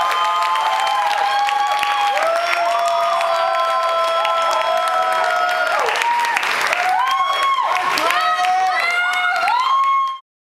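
A choir of young singers sings in harmony.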